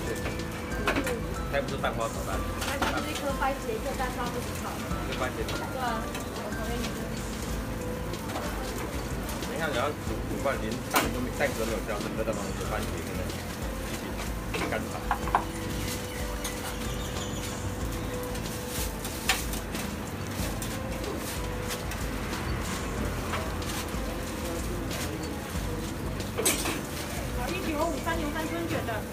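Metal utensils clink and scrape on a hot griddle.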